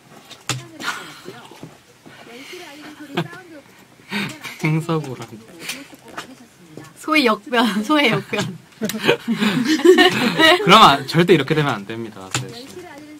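A young man and a young woman laugh together.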